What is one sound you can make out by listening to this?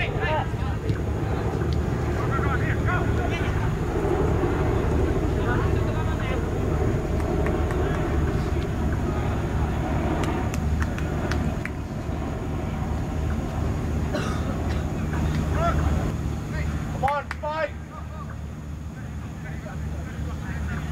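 Players shout to one another across an open field.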